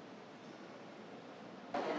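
A man speaks softly in a large echoing room.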